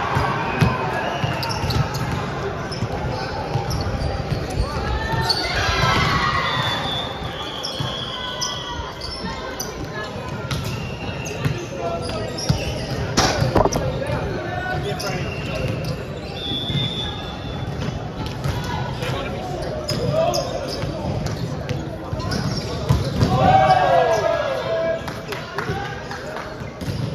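Young men shout and call out across a large echoing gym.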